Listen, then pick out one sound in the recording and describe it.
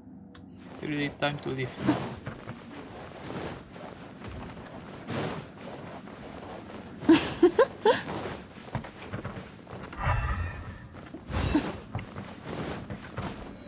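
Quick footsteps patter across a wooden floor.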